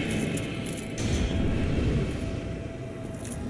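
A magic blast bursts with a loud whoosh.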